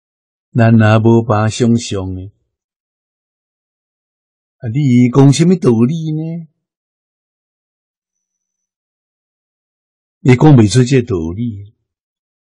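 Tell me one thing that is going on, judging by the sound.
An elderly man speaks calmly and warmly into a microphone, pausing between phrases.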